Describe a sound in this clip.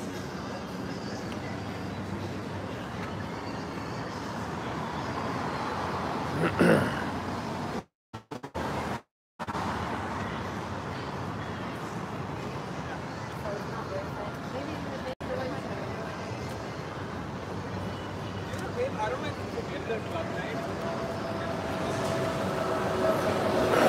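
Traffic hums steadily along an open street outdoors.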